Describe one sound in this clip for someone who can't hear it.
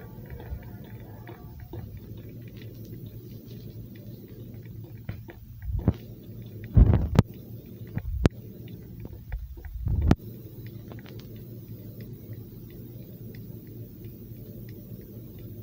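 Footsteps patter steadily on a hard floor.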